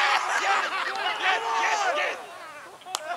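Men cheer and shout loudly outdoors.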